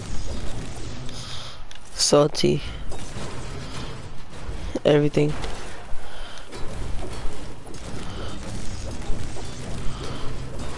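A pickaxe strikes metal and wood again and again with sharp thuds.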